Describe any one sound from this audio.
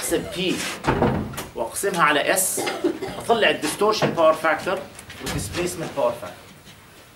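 A middle-aged man explains calmly, close by.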